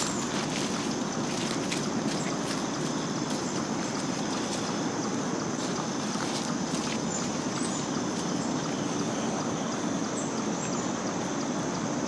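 Footsteps crunch on leaves and twigs.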